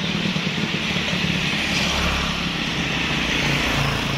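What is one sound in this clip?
A motorbike engine hums past close by.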